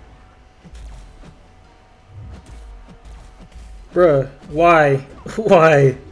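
Heavy blows thud and crash in a game fight.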